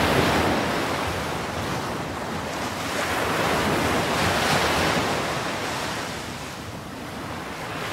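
Foaming seawater churns and rushes in loud, surging waves.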